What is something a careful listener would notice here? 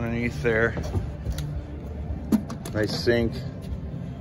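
A hatch lid clicks open.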